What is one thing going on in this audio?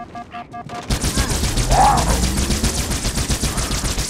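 Electric bolts crackle and burst.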